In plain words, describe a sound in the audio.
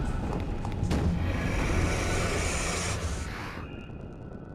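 A shimmering magical whoosh swells and then cuts off.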